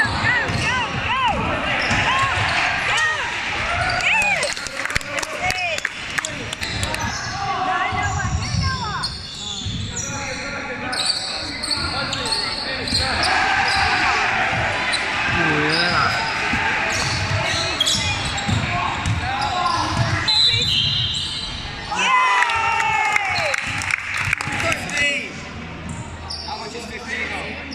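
Sneakers squeak sharply on a wooden floor in a large echoing hall.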